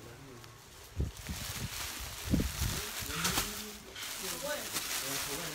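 Plastic-wrapped clothing rustles and crinkles as it is handled.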